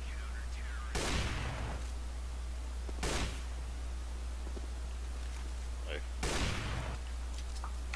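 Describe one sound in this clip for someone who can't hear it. A sniper rifle fires loud, sharp shots that echo.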